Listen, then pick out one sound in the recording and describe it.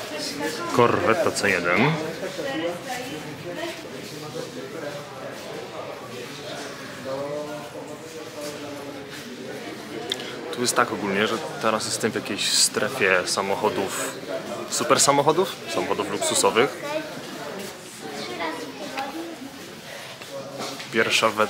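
A crowd murmurs in the background of a large hall.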